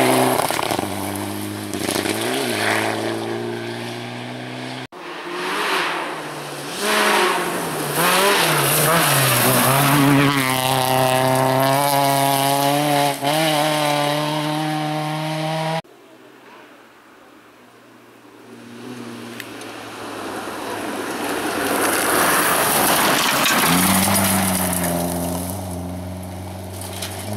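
A rally car engine roars and revs hard as it speeds past.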